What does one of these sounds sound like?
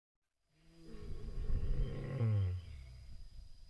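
A lion growls deeply, close by.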